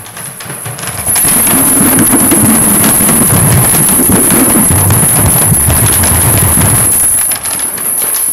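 Metal chains are shaken around inside a frame drum, rattling and scraping over the drum's skin.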